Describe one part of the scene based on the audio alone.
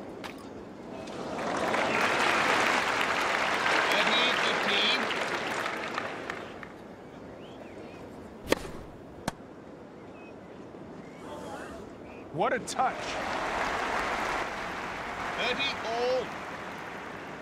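A crowd cheers and applauds loudly.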